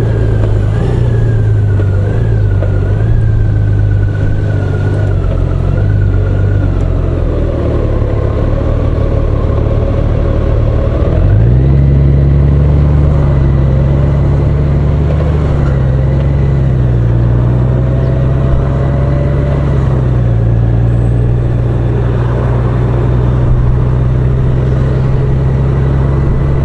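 Wind rushes past a motorcycle windscreen.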